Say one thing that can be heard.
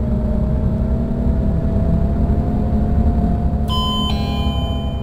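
A bus engine hums steadily, slowly rising in pitch.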